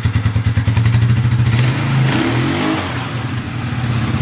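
A quad bike engine revs up briefly.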